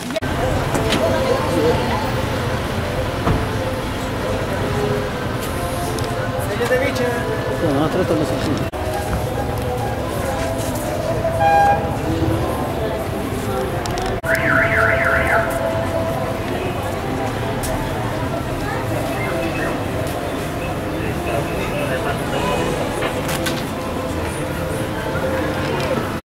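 A busy street crowd murmurs and chatters outdoors.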